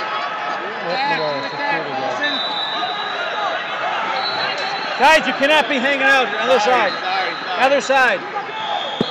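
Shoes squeak sharply on a mat as wrestlers scramble.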